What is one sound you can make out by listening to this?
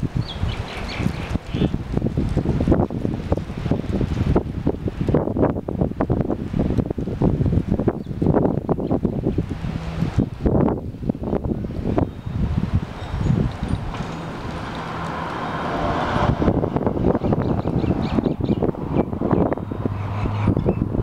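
Leaves of a tree rustle in the wind.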